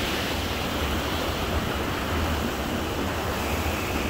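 A stream rushes over rocks nearby.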